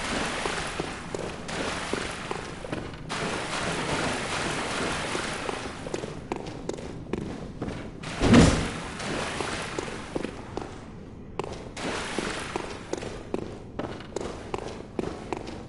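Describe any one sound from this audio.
Footsteps tread on wet stone.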